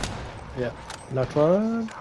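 A rifle reloads with metallic clicks.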